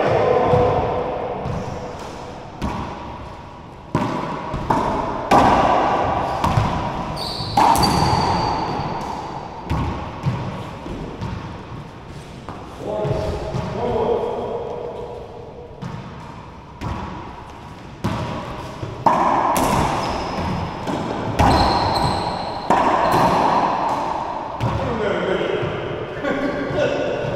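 Rackets strike a ball with loud cracks.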